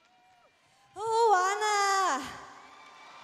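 A young woman in the audience calls out loudly.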